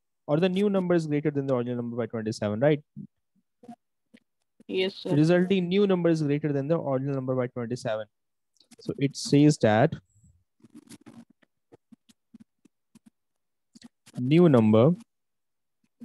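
A young man speaks calmly and with pauses, close to a microphone.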